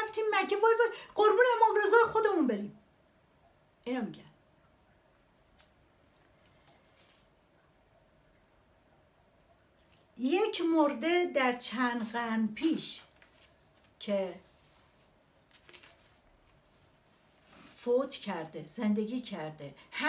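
A middle-aged woman speaks calmly and close by, with long pauses.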